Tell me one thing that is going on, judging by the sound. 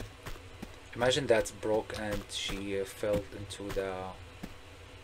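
A man speaks animatedly into a nearby microphone.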